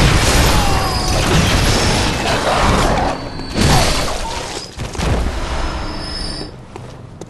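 Blades slash and strike flesh in a fight.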